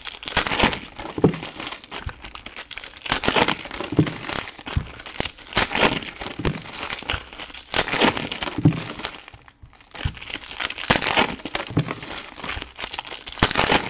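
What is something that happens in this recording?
Foil card packs tear open.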